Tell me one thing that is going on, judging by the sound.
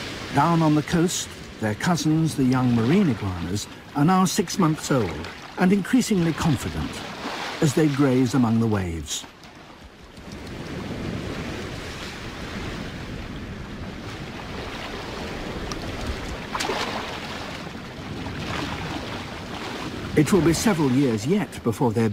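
Waves crash and surge over rocks.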